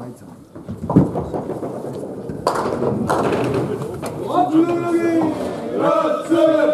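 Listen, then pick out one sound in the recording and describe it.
Bowling balls rumble down wooden lanes.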